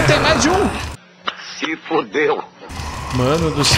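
An elderly man speaks with animation, heard through a television loudspeaker.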